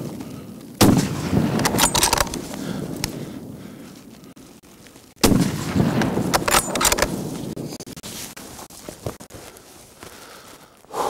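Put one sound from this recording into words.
A rifle fires loudly twice, each shot rolling away in a long echo outdoors.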